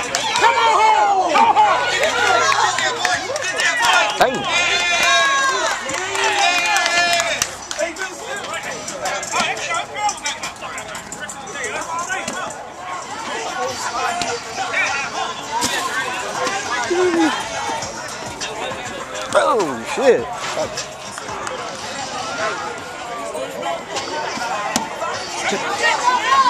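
A crowd of young women and men shouts and cheers outdoors.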